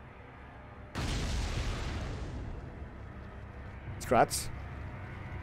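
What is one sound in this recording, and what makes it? A gun fires with sharp, loud shots.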